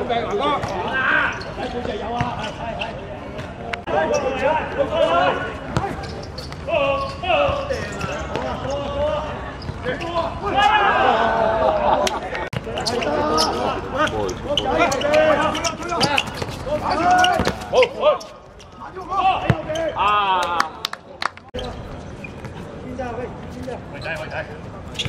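Young men shout and call out across an open outdoor court.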